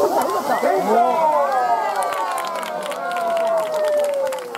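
A man calls out in a long, drawn-out chant.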